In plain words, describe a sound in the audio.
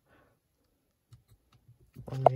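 A push button clicks.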